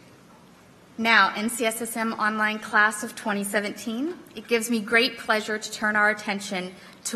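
A woman speaks calmly into a microphone over loudspeakers in a large hall.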